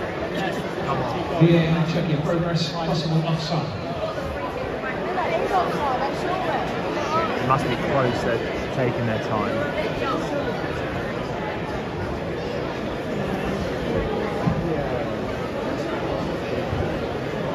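A large stadium crowd murmurs and chatters steadily outdoors.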